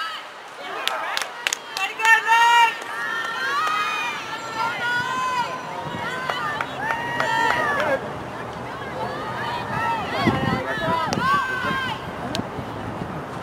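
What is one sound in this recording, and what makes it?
Hockey sticks crack sharply against a ball.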